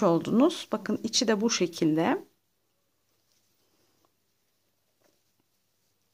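Yarn rustles softly as a crochet hook works through it.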